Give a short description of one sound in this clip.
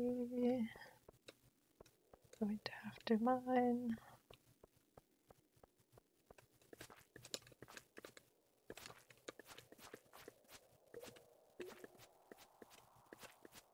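Footsteps patter quickly across the ground.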